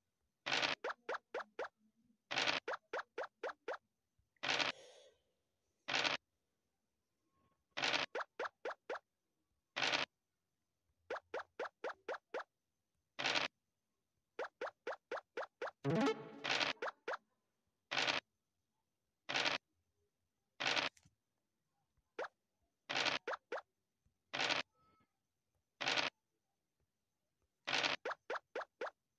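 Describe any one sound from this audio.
Dice rattle as they are rolled, again and again.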